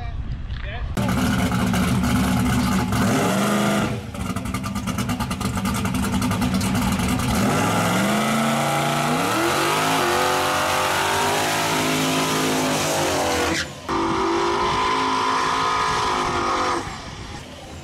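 A truck engine revs hard and roars up and down.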